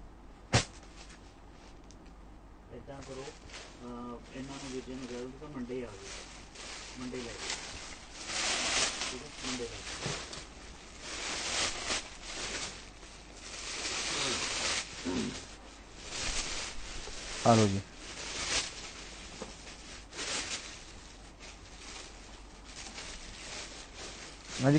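Fabric rustles and swishes as it is handled close by.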